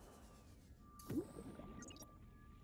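Water gushes and bubbles.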